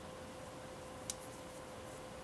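A small plastic part clicks faintly between fingers.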